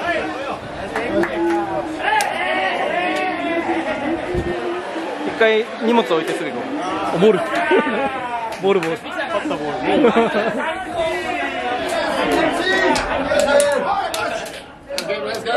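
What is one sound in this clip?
Hands slap together in high fives.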